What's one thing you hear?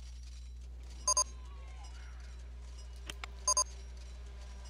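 A short electronic chime rings twice.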